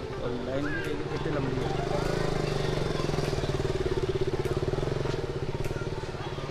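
A motorbike engine hums as the motorbike rides past nearby.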